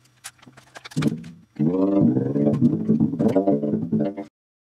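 An electric bass guitar plays a run of deep, ringing notes.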